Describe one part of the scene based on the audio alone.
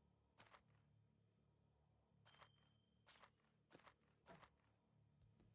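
Short game sound effects clink now and then.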